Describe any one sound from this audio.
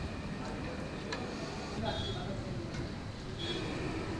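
A metal skimmer scrapes and clinks against a pan.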